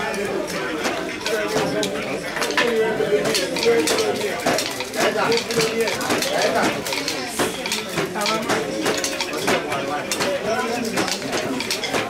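Wooden looms clack and knock rhythmically.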